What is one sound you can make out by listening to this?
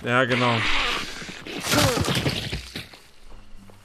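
A heavy blow swings and strikes with a loud thud.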